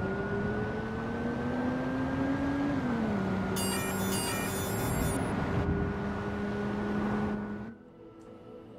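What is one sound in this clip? A car engine hums steadily and shifts pitch as the car drives.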